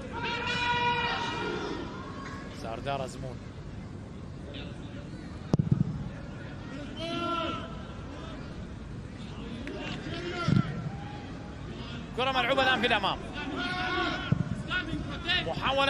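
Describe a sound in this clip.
A stadium crowd murmurs and cheers outdoors.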